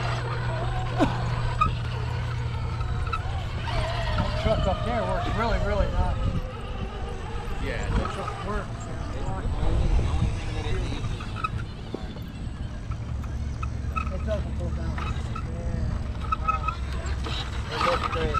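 A small electric motor whirs as a toy truck crawls over rocks.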